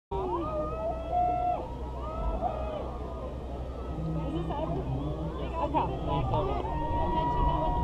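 A crowd chatters and calls out across an open outdoor space.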